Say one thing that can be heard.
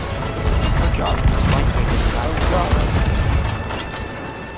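Heavy cannons boom with deep rumbling blasts.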